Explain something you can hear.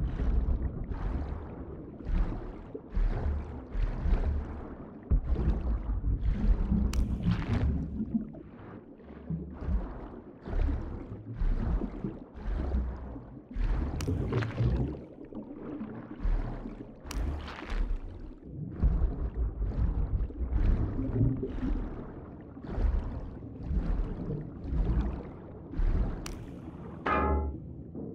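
Water swishes and gurgles in rhythmic bursts as a swimmer strokes underwater.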